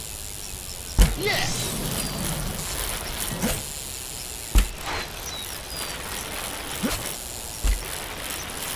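A bike lands hard with a thud after a jump.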